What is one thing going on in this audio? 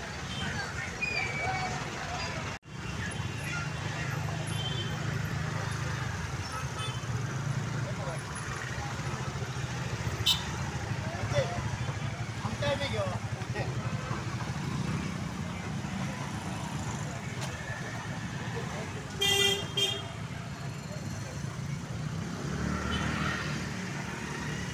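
Many motorbike engines rumble steadily nearby.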